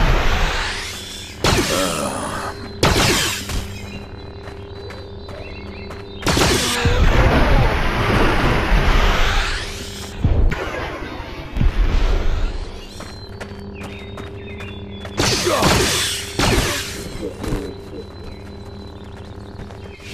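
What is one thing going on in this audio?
Swords clash and ring with sharp metallic strikes.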